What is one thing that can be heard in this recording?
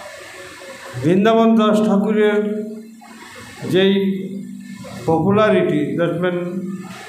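An older man chants loudly in long, drawn-out phrases through a microphone.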